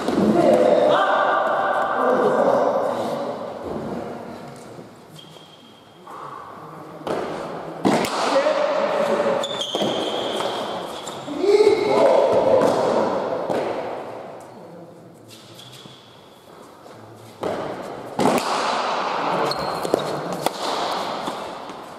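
Players' shoes squeak on the hard floor.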